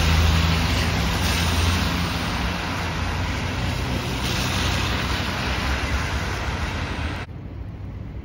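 Car tyres hiss along a wet road nearby.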